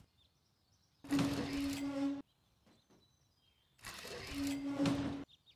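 A cage of metal bars clanks and grinds as it lowers.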